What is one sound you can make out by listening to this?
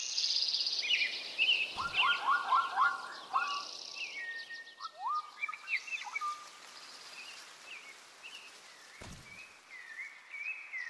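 A large cat's paws pad softly over grass.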